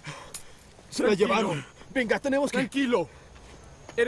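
A young man shouts angrily.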